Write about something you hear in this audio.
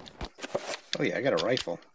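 A man talks close to a microphone.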